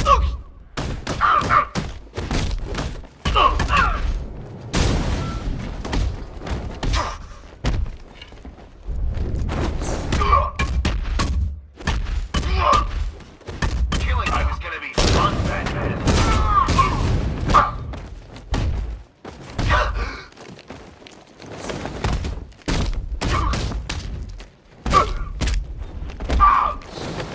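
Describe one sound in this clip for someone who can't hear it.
Punches and kicks land in a fast brawl.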